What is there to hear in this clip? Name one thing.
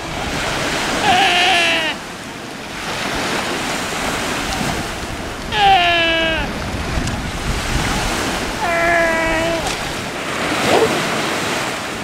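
Sea lions bark and bellow loudly nearby.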